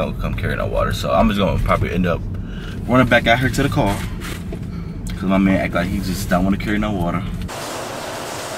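A young man talks with animation up close.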